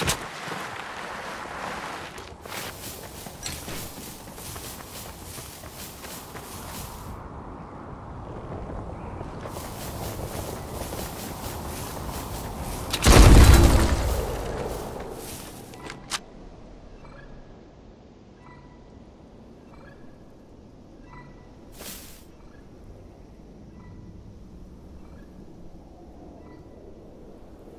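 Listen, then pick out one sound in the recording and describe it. Footsteps run and rustle through tall grass.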